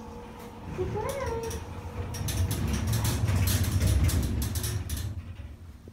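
A lift hums and rumbles as it moves.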